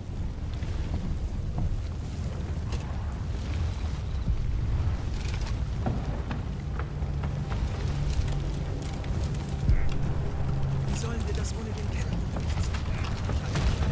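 Gunfire cracks in bursts nearby.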